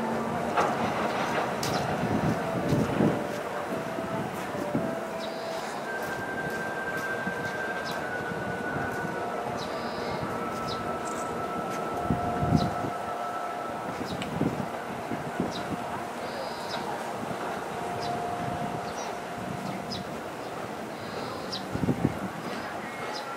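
A long freight train rumbles and clatters steadily over a bridge.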